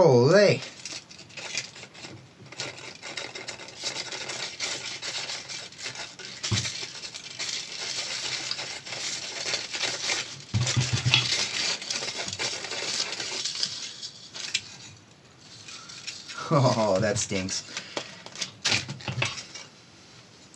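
A rubber speaker surround scrapes and crackles as hands peel it away.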